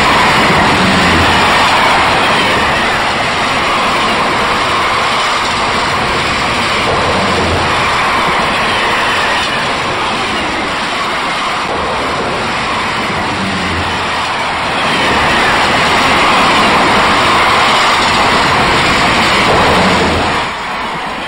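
Train wheels clack over rail joints in a regular rhythm.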